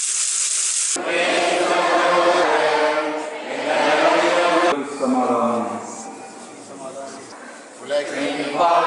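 A crowd of children and adults sings together.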